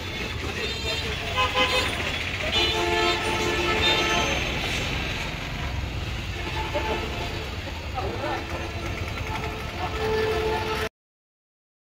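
Vehicle horns honk repeatedly.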